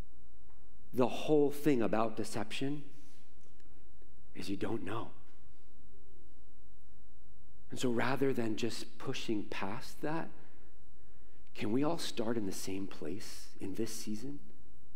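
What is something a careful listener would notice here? A man speaks with animation through a microphone and loudspeakers in a large echoing room.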